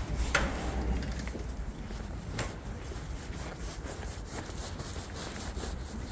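A dog's paws patter on the pavement.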